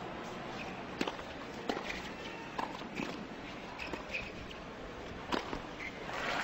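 A tennis ball is struck back and forth with sharp pops.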